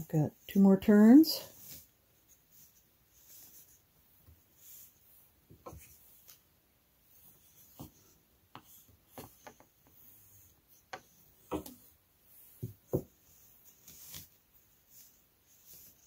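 Stiff cards click and rattle softly as hands turn them.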